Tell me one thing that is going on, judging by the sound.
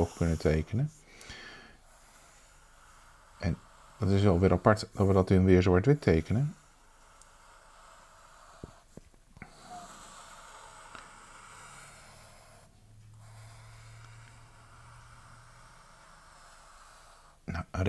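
A marker pen squeaks and scratches across paper.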